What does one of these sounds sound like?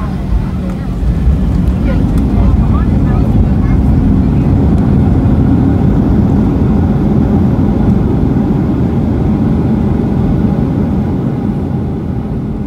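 Engine thrust reversers roar louder as an airliner slows.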